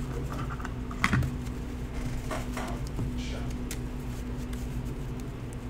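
A card slaps softly onto a tabletop.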